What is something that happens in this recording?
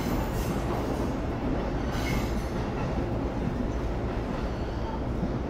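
An electric train rumbles steadily.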